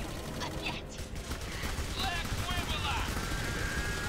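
A heavy rotary gun fires rapid bursts.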